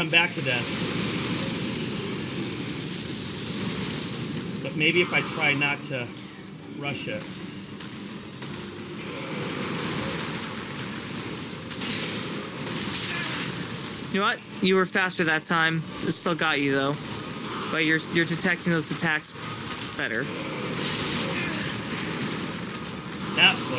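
A man talks with animation over a microphone.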